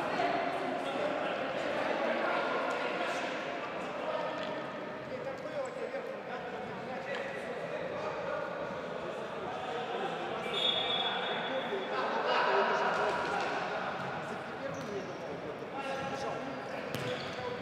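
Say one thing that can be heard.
Men shout to each other across a large echoing hall.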